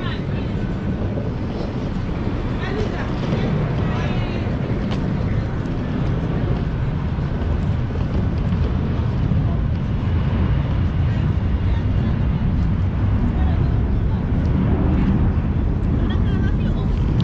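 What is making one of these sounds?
Wind blows steadily outdoors, rumbling against the microphone.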